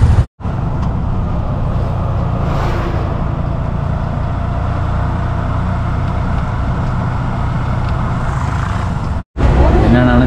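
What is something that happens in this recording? A small motor engine hums steadily as a vehicle drives along a road.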